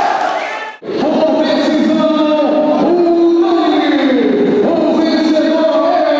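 A man announces loudly through a microphone over loudspeakers.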